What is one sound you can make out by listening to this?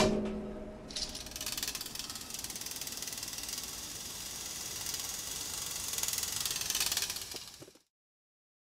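A metal bucket rattles and hisses as it slides along a cable.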